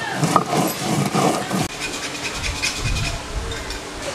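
A stone roller grinds back and forth on a stone slab.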